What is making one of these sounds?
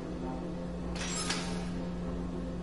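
A metal tray slides out of a cold-storage drawer with a scrape.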